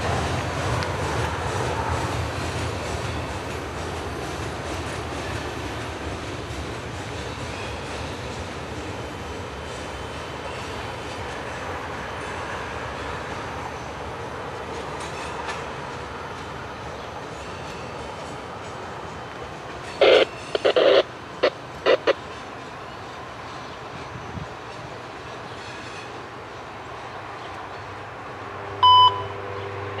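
Freight cars roll away on steel rails, fading into the distance.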